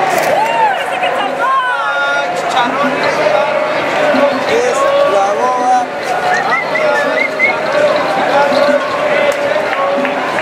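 A lively crowd of men and women chatters and calls out nearby, outdoors.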